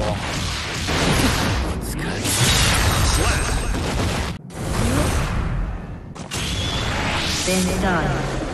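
Attacks crash and explode in loud, fast bursts of noise.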